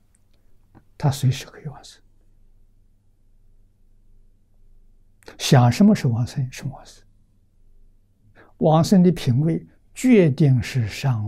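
An elderly man speaks calmly into a close microphone, with pauses.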